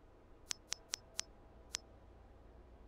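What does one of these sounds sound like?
Short menu clicks tick several times in quick succession.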